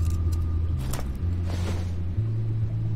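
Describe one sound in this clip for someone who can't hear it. Fingers tap on keys.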